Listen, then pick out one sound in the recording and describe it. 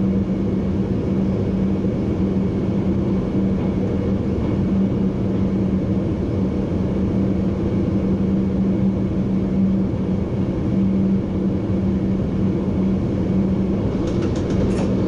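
A train rumbles steadily along the tracks with a low drone.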